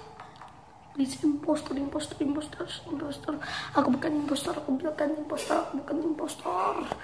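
A young boy talks close to the microphone with animation.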